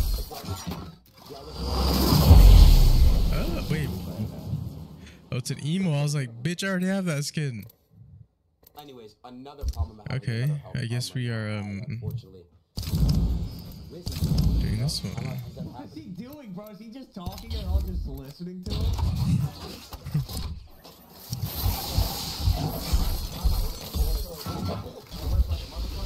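Several young men talk and react with animation, heard through a microphone.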